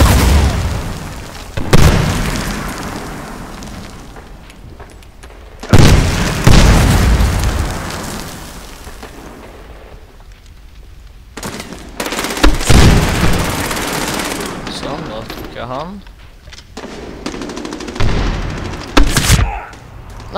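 Loud gunshots and explosions boom and echo off walls.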